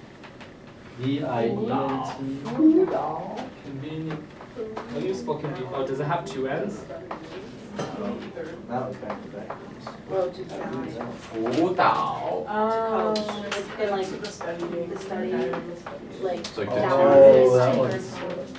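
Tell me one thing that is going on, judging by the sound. Several young men and women talk over each other nearby.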